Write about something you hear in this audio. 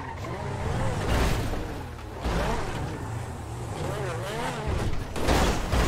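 Tyres screech on pavement in short bursts.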